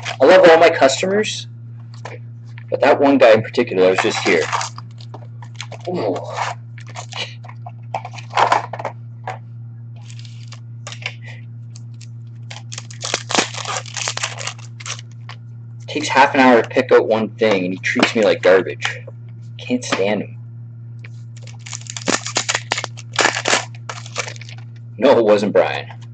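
Plastic wrappers crinkle and tear as packs are opened.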